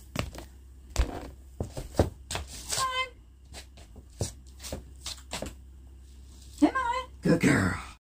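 Slippers shuffle and tap on a wooden floor.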